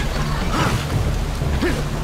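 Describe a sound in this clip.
A fireball whooshes and bursts.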